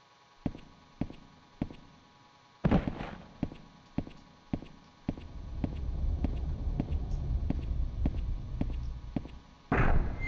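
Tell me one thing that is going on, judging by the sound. Footsteps thud steadily on a stone floor with a slight echo.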